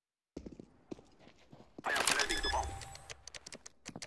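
Keypad keys beep as a bomb is armed.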